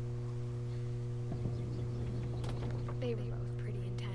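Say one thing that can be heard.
A sliding door rattles as it rolls open.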